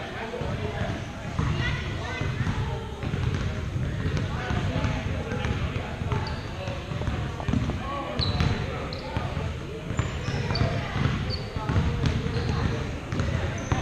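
Spectators chatter nearby in a large echoing hall.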